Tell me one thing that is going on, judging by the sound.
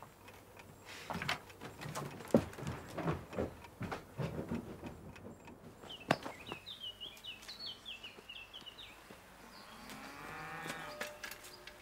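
Footsteps thump nearby.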